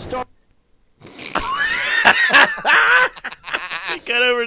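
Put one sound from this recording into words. Several men laugh loudly into close microphones.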